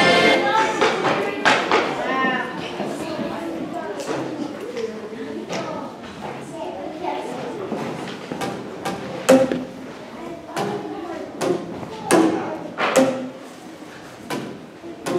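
A woman speaks calmly to children in an echoing hall.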